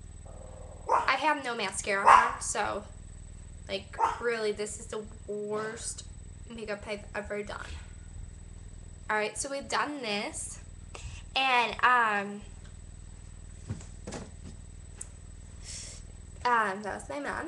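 A young woman talks in a tearful voice, close by.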